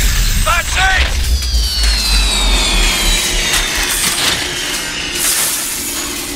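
Metal grinds and sparks crackle.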